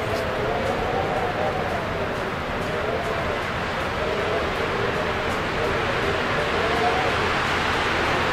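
Wind howls and blows steadily.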